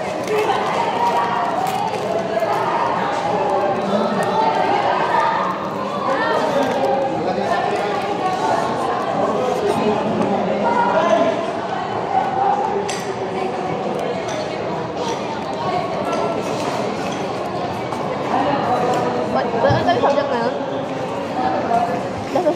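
Many young people chatter in a large echoing hall.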